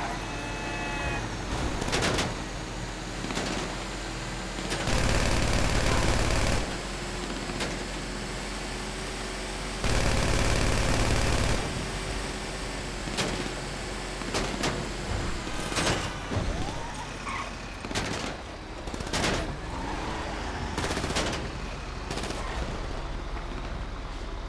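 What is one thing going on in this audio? A heavy truck engine rumbles steadily as it drives along a road.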